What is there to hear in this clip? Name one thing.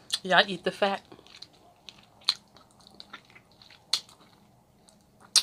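A woman chews and smacks her lips wetly close to a microphone.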